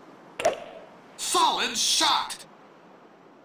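A golf club swings and strikes a ball with a sharp whack.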